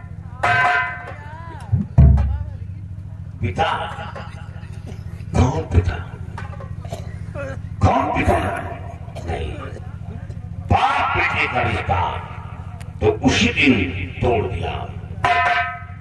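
A man speaks and sings loudly through a microphone.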